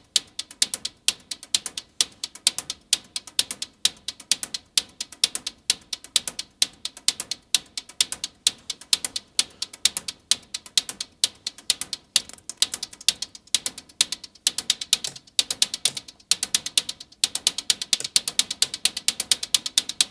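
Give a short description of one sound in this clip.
A modular synthesizer plays a fast, rhythmic pattern of sharp, clicking electronic percussion.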